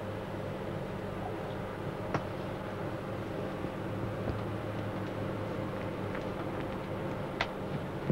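A tennis ball bounces on a court.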